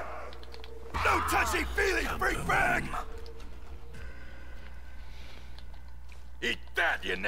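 A young man talks excitedly close to a microphone.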